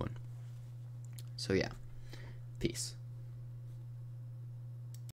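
A computer mouse clicks a few times.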